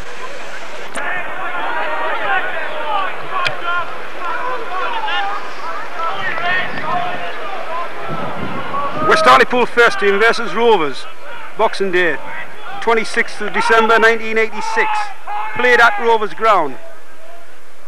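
Spectators shout and call out outdoors.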